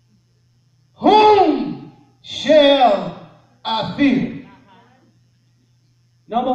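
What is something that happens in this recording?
A man preaches loudly into a microphone in a large echoing hall, in long drawn-out phrases.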